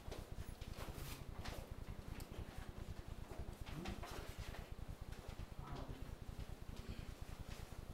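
A large sheet of paper rustles and crinkles as it is unrolled.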